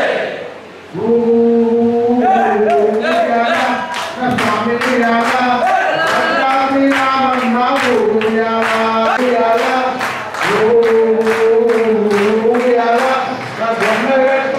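A crowd of men chants together.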